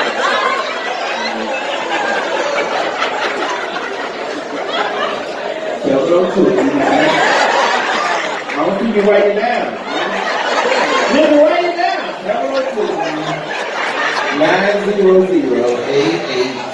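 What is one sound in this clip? A woman sings into a microphone through loudspeakers.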